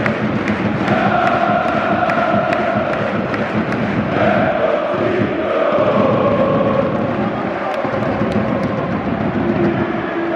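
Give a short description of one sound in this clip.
A huge crowd of fans sings and chants loudly in an open stadium.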